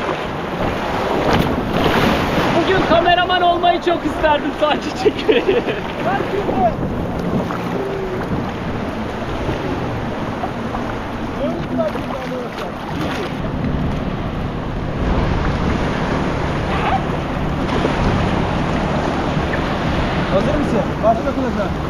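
Waves wash and splash around in shallow water.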